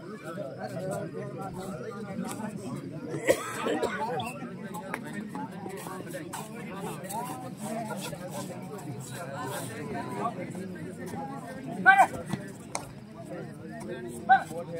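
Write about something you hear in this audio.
A crowd of young men chatters and calls out outdoors.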